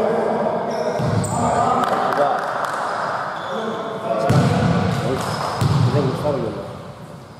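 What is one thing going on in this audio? A basketball bounces with dull thuds on the court.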